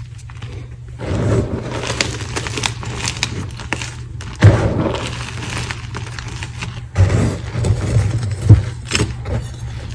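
Hands scoop and crunch through a pile of crumbly chalk.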